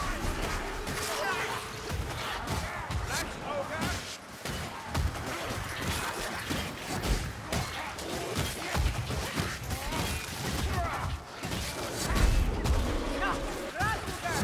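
Creatures screech and squeal in a frantic swarm.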